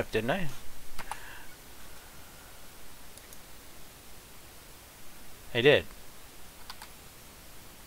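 A game menu gives short clicks as it opens and closes.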